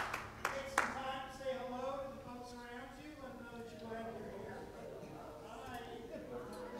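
A man sings into a microphone in an echoing hall.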